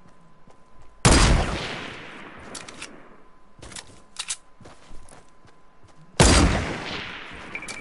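A sniper rifle fires loud shots that echo away.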